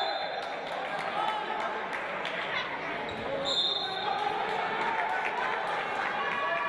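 Sneakers squeak sharply on the court floor.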